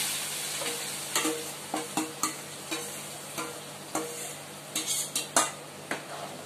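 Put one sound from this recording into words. A metal spoon scrapes and clinks against a metal bowl.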